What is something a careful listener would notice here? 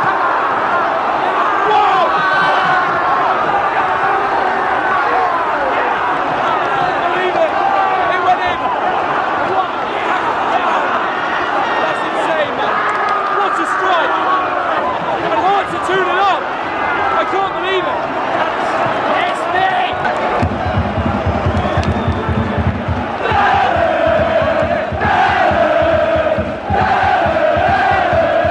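A large stadium crowd cheers and sings loudly.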